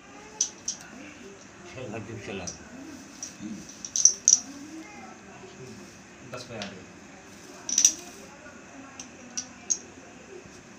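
Small objects click and clatter as they are thrown onto the floor.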